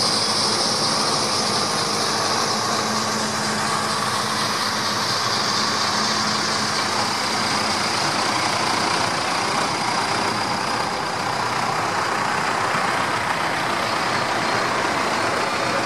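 Tractor engines rumble loudly as they drive past one after another.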